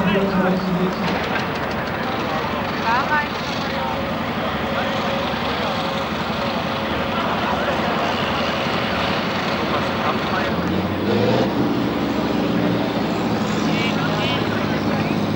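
Several tractor engines roar and rev outdoors.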